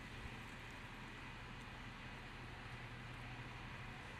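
A large truck engine rumbles nearby.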